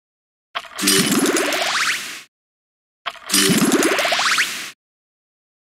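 Game pieces burst with a bright, rising chiming sound effect, twice.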